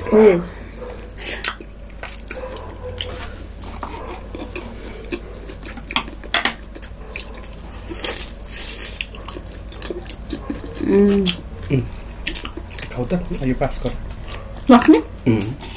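A young woman chews and smacks food close to the microphone.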